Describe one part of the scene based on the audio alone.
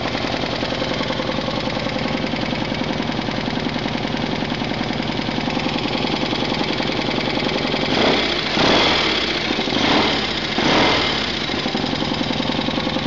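A motorcycle engine idles close by with a steady, rapid chugging.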